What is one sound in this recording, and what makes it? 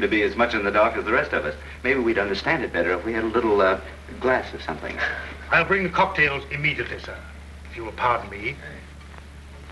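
A woman speaks softly, heard through an old, hissy film soundtrack.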